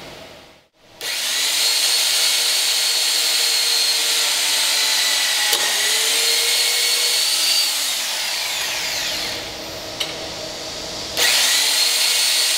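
An electric tapping machine whirs as it threads a hole in aluminium.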